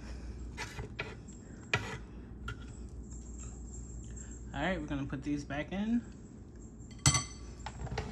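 Metal tongs clack and scrape against food in a fryer basket.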